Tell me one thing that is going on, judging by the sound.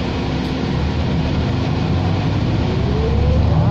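A bus engine revs up, rising in pitch as the bus pulls away.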